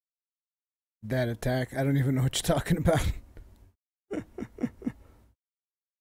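A man speaks with animation, close to a microphone.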